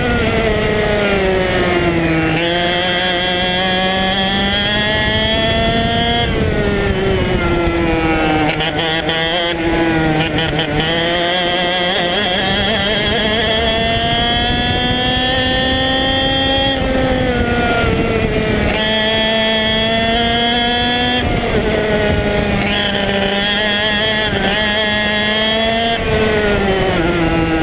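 A kart engine buzzes loudly up close, its pitch rising and falling as it speeds up and slows for corners.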